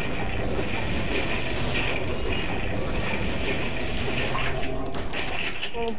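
Gunshots crack rapidly in a video game.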